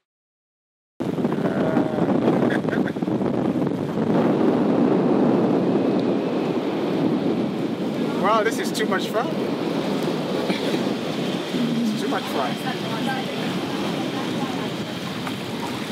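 Water rushes steadily past the hull of a moving boat.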